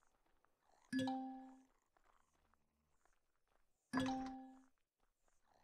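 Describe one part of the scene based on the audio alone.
A game menu gives a short chiming tone.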